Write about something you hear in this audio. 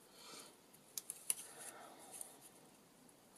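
Small scissors snip through paper.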